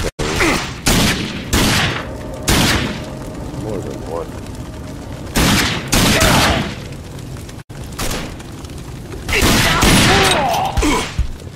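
A gun fires loud bursts.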